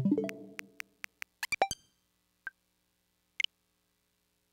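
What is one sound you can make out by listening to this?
Short electronic menu clicks and chimes sound in quick succession.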